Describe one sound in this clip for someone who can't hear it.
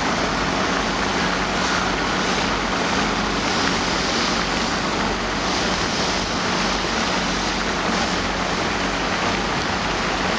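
A high-pressure jet of water hisses and sprays onto pavement outdoors.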